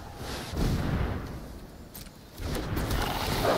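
A digital card game plays a soft whooshing effect as a card lands.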